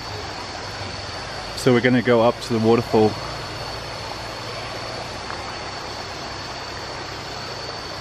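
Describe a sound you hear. Shallow stream water trickles gently over stones.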